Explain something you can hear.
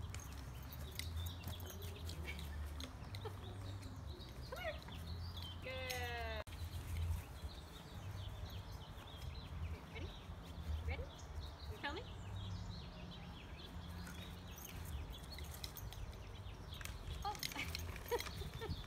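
A dog runs across grass.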